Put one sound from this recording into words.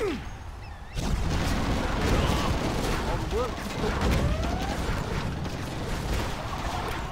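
Gunfire crackles and explosions boom in a battle.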